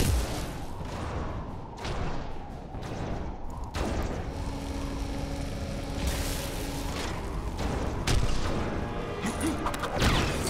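Flames whoosh and crackle.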